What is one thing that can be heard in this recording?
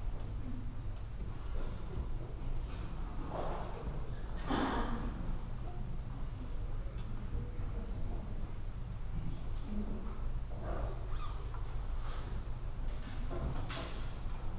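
A brass band plays in a large echoing hall.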